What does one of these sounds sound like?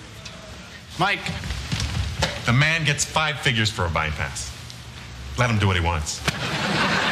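A young man speaks loudly and excitedly.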